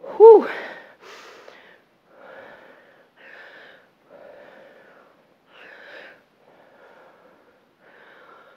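A woman breathes out hard in a steady rhythm.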